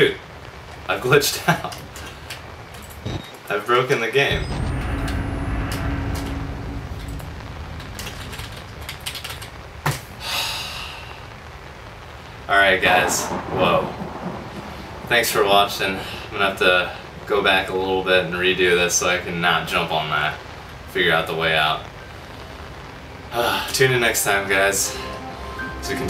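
A young man laughs into a close microphone.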